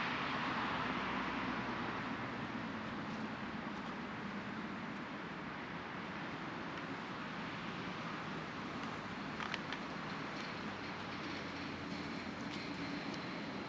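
Steady rain falls and patters on leaves and water outdoors.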